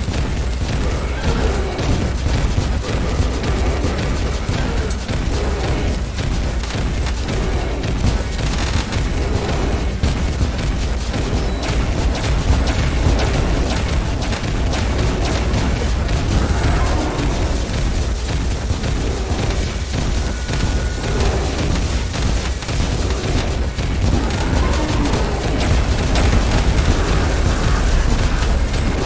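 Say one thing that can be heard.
Rapid game sound effects of magic attacks crackle and zap.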